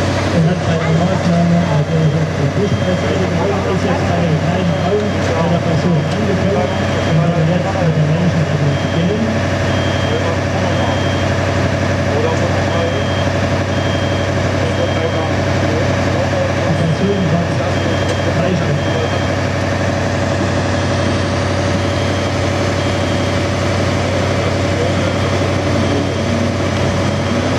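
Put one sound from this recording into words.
A fire engine's motor runs with a steady low hum.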